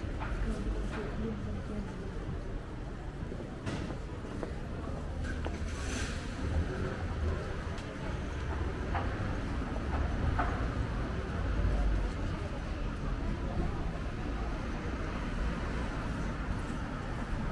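Footsteps tap steadily on a paved sidewalk.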